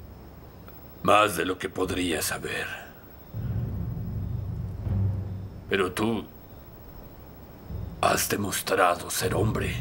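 A young man answers calmly, close by.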